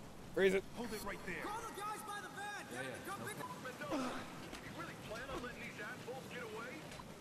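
A young man speaks nervously nearby.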